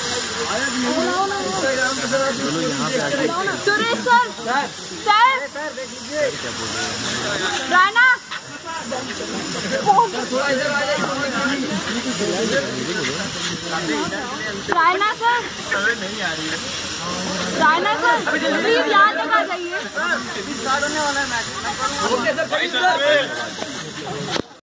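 Several boys talk and call out nearby, outdoors in open air.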